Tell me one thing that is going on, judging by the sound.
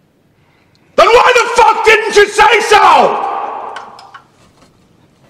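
A man speaks softly close by.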